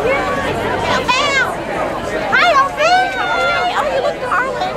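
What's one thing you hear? A woman cries out in a high, excited voice.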